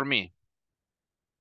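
A man speaks a brief word through a computer microphone.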